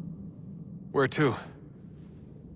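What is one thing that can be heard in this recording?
A young man asks a short question.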